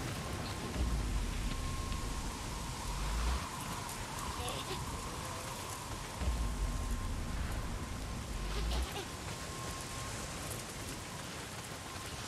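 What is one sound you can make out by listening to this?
Footsteps crunch through grass.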